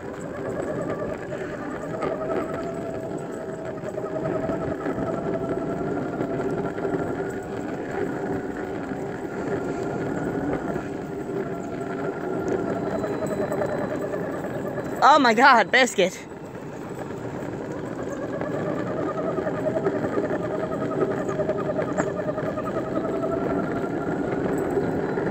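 Skateboard wheels roll steadily over rough pavement.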